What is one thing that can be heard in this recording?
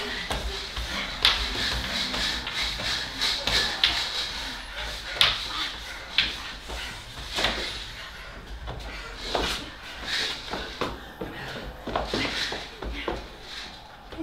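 Bodies shuffle and thump softly on a stage floor.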